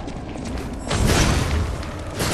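A loud burst erupts with a rushing roar.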